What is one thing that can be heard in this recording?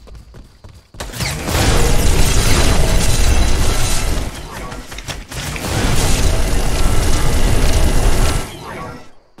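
A game weapon fires a roaring energy beam in loud bursts.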